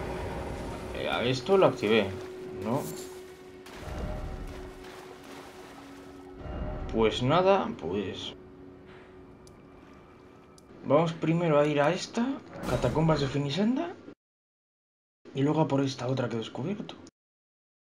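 A young man talks with animation into a headset microphone, close by.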